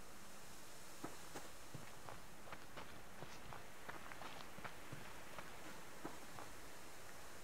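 Footsteps crunch softly through grass.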